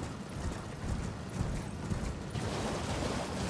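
Horse hooves thud rhythmically on soft ground.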